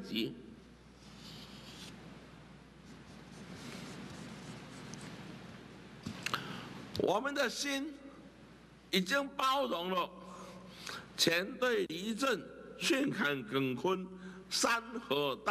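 A marker scratches across paper.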